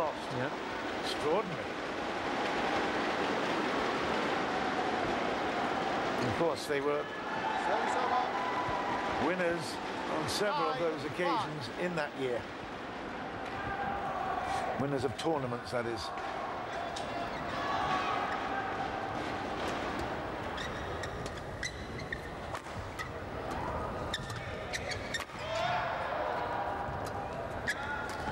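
A large crowd cheers and roars in a big echoing hall.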